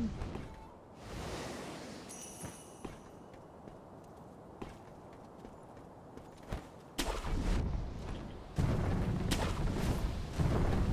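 Wind blows in strong gusts outdoors.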